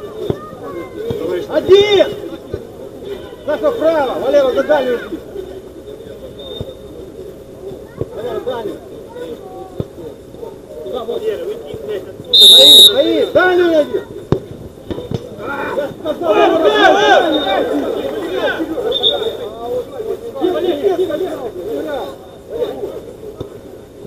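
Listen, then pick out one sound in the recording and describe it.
Men shout and call out to each other outdoors, some way off.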